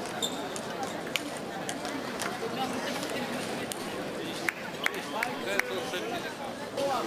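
A crowd murmurs throughout a large echoing hall.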